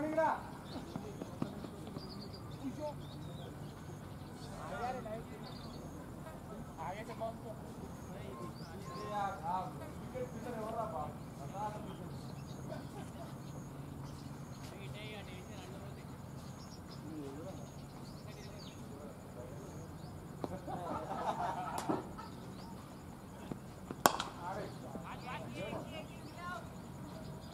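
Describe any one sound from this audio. Men call out and talk across an open field.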